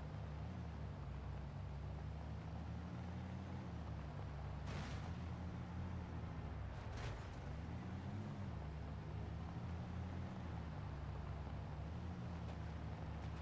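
A truck engine hums low and steady, rising and falling in pitch as it drives.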